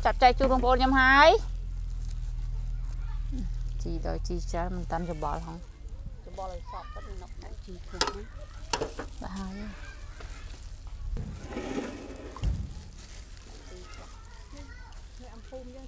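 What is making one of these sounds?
Gloved hands toss and scoop a moist salad with soft squelching.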